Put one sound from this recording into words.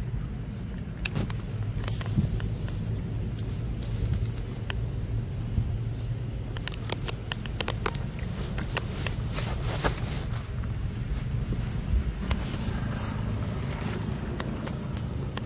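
Dry leaves rustle and crackle as monkeys move about on the ground.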